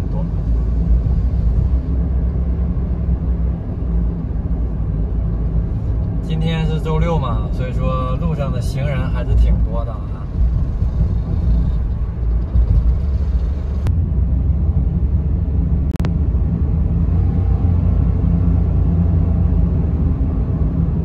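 A car engine hums with a low, steady road rumble from inside a moving car.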